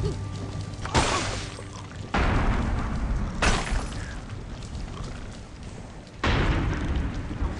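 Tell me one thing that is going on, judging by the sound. Heavy rain pours down.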